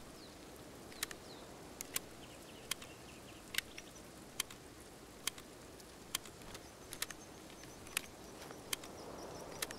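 Menu clicks tick at a regular pace.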